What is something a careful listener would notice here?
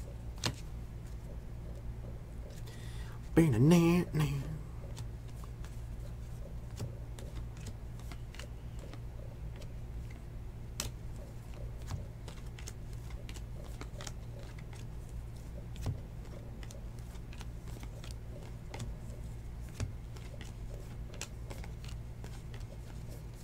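Trading cards flick and shuffle between fingers, with soft quick snaps.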